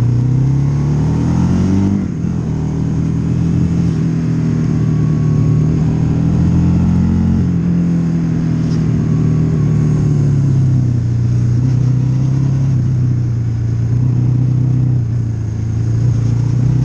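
A motorcycle engine hums steadily up close, rising and falling in pitch.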